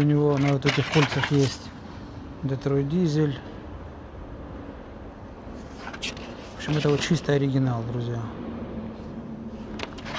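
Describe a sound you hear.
Paper crinkles and rustles as it is handled.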